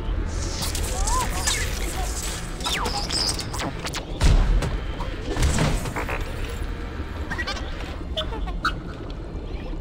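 A small robot chirps and whistles in rising and falling beeps.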